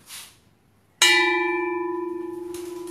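A large metal bell is struck once and rings on with a long, slowly fading hum.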